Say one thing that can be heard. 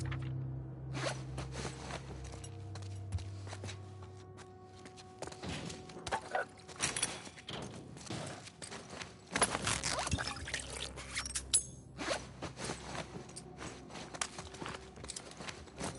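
Footsteps scuff across a hard floor.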